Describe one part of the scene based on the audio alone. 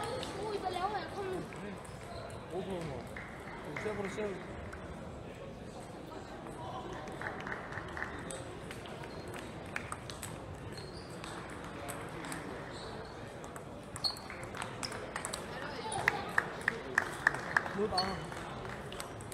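A crowd of children and adults chatters in the background.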